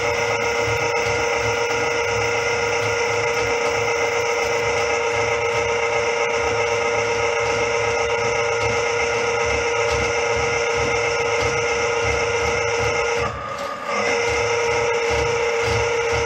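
A metal cable rattles and scrapes inside a drain.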